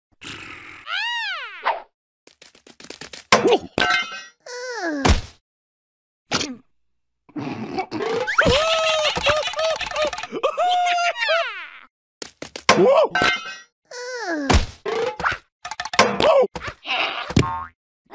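Cartoon creatures squeal and babble in high, squeaky voices.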